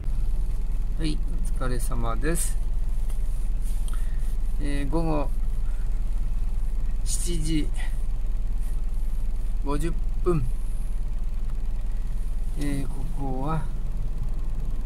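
A middle-aged man speaks calmly close by, in short phrases with pauses.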